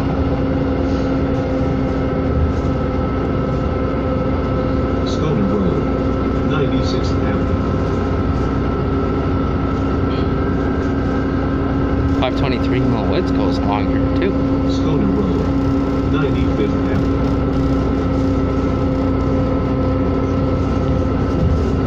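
Tyres rumble on the road under the bus.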